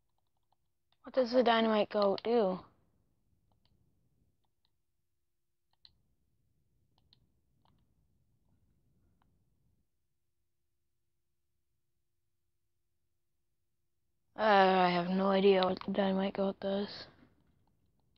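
A young woman speaks briefly and with animation close to a microphone.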